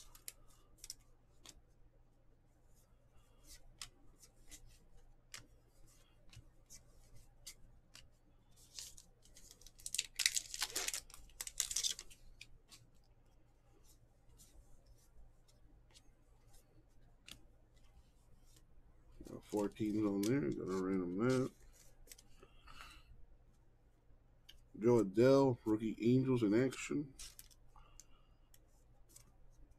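Trading cards rustle and flick as hands sort through them.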